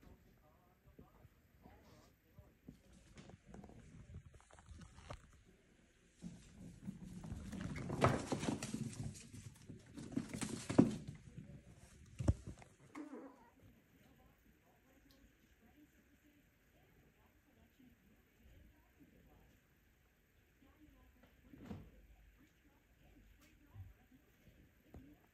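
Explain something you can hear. Small puppies scuffle and patter on a hard floor.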